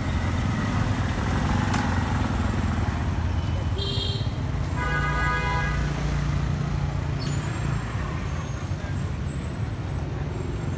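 Truck engines idle with a low, steady rumble close by.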